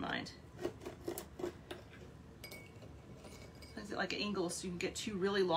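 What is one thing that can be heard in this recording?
A knife taps and scrapes on a cutting board.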